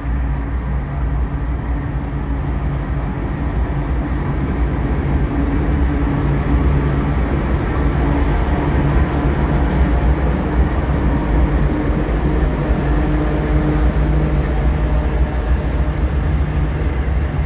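Diesel locomotives rumble loudly as they pass close by.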